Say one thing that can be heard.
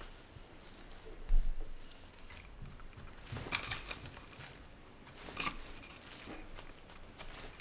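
Plastic film crinkles and rustles under gloved hands.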